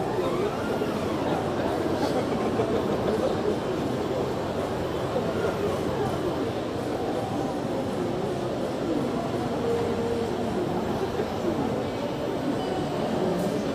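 A crowd of men and women chatter nearby in a busy, echoing hall.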